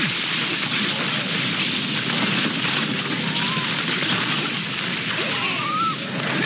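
Fiery spell blasts crackle and roar.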